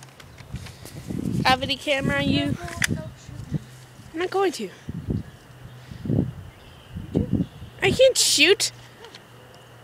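A boy talks with excitement.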